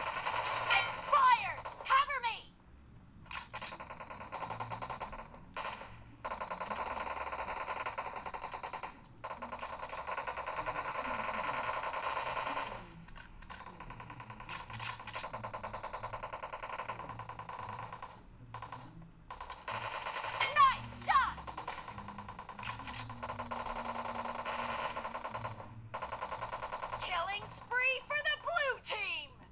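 Rapid rifle fire from a mobile shooting game plays.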